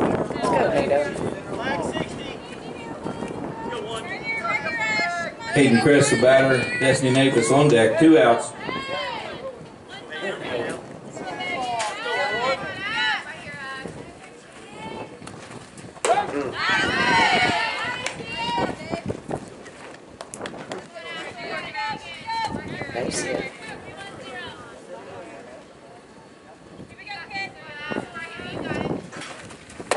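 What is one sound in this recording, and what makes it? Young women shout and cheer outdoors across a field.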